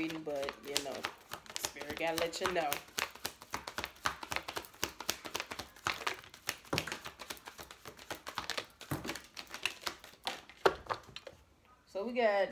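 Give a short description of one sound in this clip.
Playing cards riffle and flick rapidly as they are shuffled.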